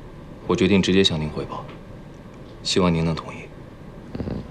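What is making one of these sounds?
A young man speaks calmly and politely nearby.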